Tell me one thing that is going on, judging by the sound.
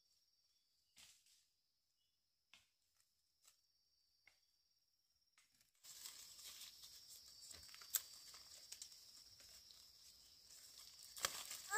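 Leaves rustle close by.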